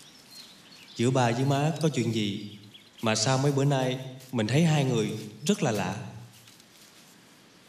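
A young man speaks tensely up close.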